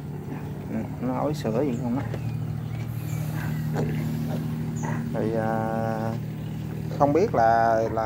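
Piglets squeal and grunt nearby.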